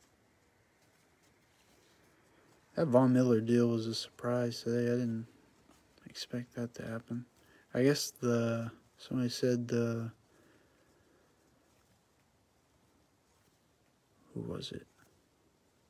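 Trading cards rustle and slide softly against each other.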